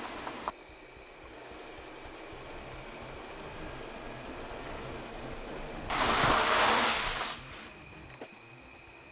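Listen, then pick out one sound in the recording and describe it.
A car approaches and roars past close by.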